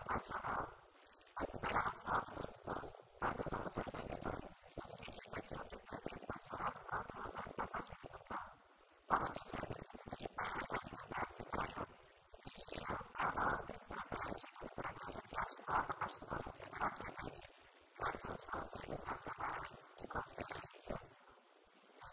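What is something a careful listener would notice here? A woman speaks with animation into a microphone, close by.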